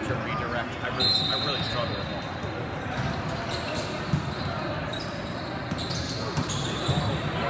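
A volleyball thumps as players hit it.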